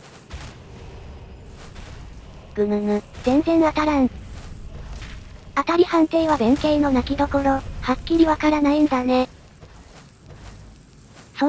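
A magic spell hums with a low, steady drone.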